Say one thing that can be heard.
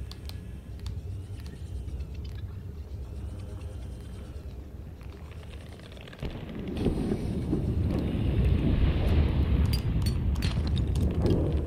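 A small underwater vehicle's motor hums steadily.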